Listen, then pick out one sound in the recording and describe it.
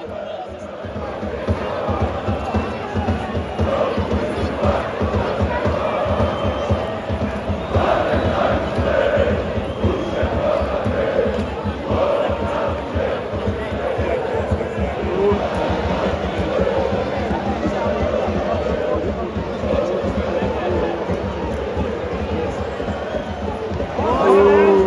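A large crowd of fans chants and sings loudly in an open stadium.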